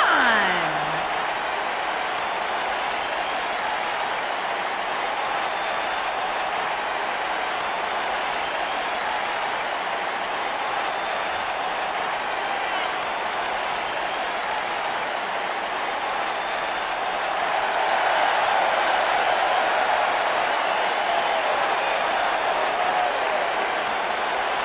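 A large crowd cheers and roars steadily in a big arena, swelling louder later on.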